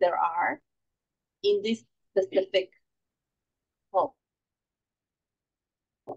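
A woman speaks calmly into a close microphone, in short bursts with pauses.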